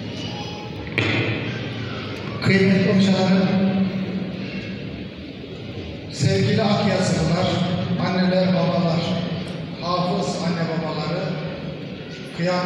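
A man chants loudly through a microphone in a large echoing hall.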